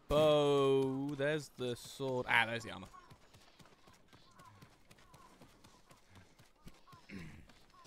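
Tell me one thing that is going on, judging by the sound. Footsteps patter quickly on stone paving.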